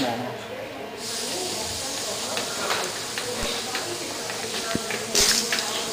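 Gas hisses steadily from a torch.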